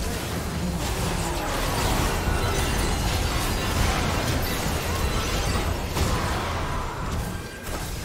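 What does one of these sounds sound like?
Game spell effects whoosh and crackle in a fast fight.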